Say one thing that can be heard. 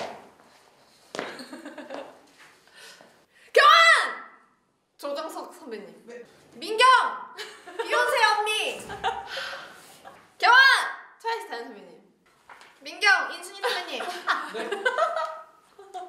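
Young women talk with animation close by.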